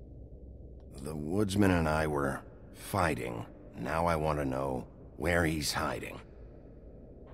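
A man speaks in a low, stern voice.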